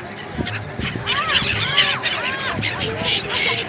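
Gulls cry overhead.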